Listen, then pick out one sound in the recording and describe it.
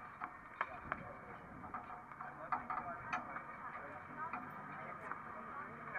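A tennis ball bounces before a serve.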